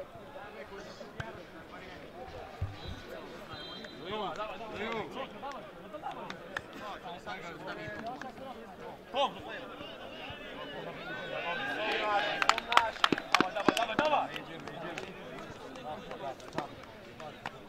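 Several men talk and call out outdoors.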